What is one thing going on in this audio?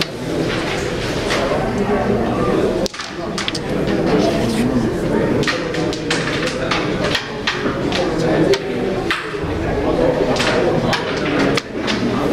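A carrom striker clicks sharply against wooden pieces on a board.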